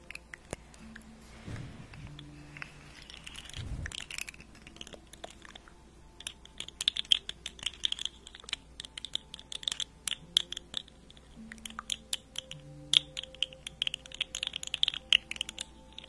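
A young woman whispers softly, close to a microphone.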